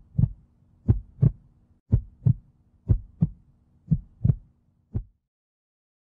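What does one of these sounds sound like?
A marker taps against a whiteboard.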